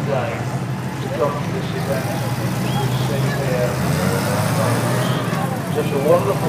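An armoured car's engine rumbles steadily as it drives past.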